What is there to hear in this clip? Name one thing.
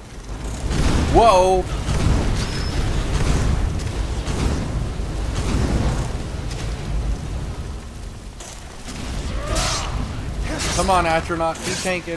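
A giant spider screeches shrilly.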